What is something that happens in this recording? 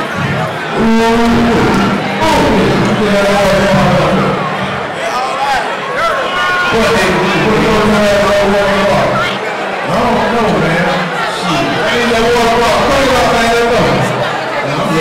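A man raps loudly into a microphone, heard through loudspeakers.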